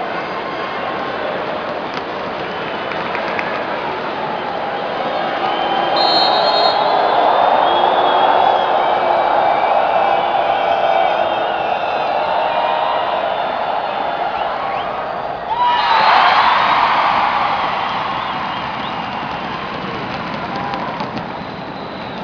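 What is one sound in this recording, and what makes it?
A large crowd cheers and chatters loudly in a big echoing arena.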